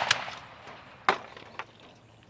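A shotgun action snaps open with a metallic click.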